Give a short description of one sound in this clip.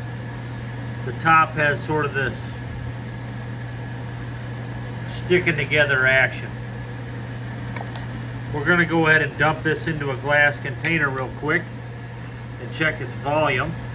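Water in a pot fizzes quietly as small bubbles form.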